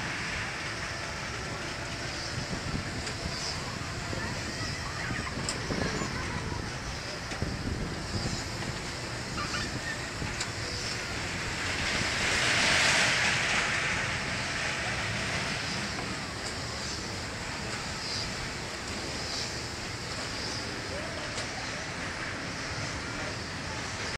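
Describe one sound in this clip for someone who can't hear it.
A fairground ride rumbles and whirs steadily as it spins round.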